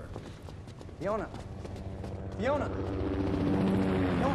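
A man speaks urgently, calling out a name.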